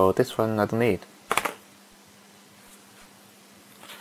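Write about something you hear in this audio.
Small plastic parts click as they are pulled apart.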